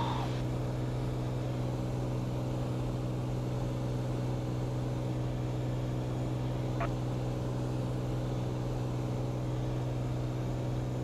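A small plane's engine drones steadily and loudly from inside the cabin.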